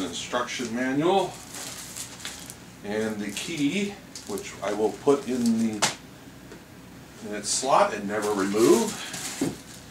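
Plastic packaging crinkles.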